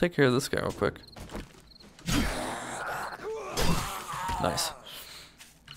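A zombie growls close by.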